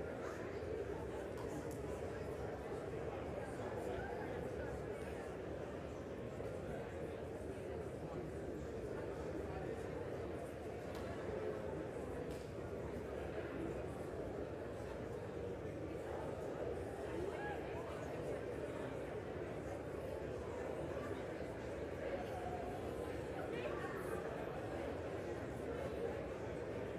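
Many men and women murmur and chatter at once in a large, echoing hall.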